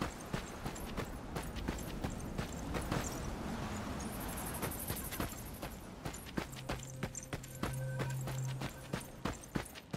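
Footsteps run quickly over stone.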